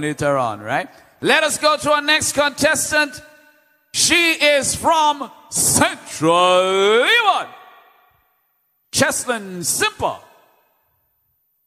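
A man speaks with feeling into a microphone, his voice ringing out loudly.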